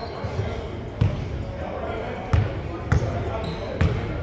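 A basketball bounces on a hardwood floor, echoing in a large hall.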